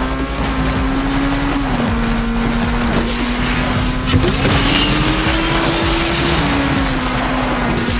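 Tyres screech while drifting.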